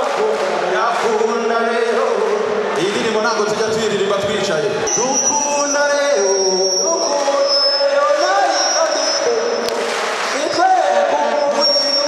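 A large crowd cheers and chants.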